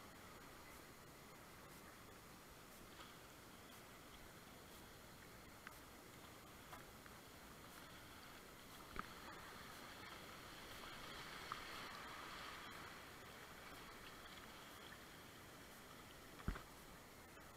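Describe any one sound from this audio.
River rapids rush and churn close by.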